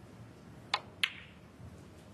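Snooker balls knock together with a crisp clack.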